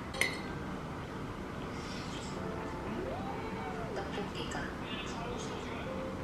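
A metal spoon and chopsticks clink against a bowl.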